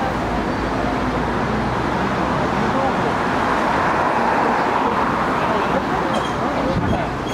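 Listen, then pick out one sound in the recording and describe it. A bus engine rumbles as the bus pulls up close by.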